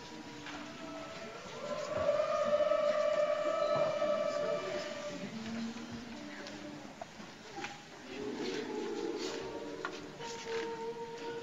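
A large children's choir sings together.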